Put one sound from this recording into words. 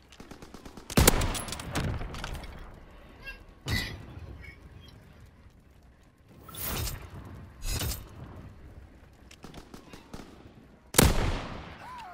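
A rifle fires loud single shots that echo away.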